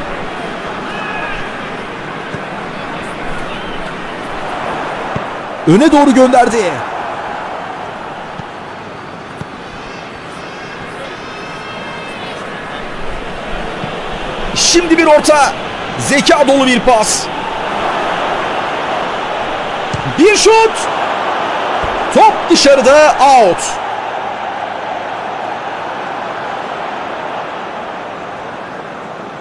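A large stadium crowd roars steadily, swelling louder as an attack nears the goal.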